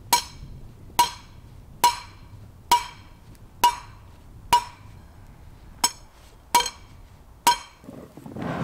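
A hammer strikes metal with sharp, ringing blows at a steady pace.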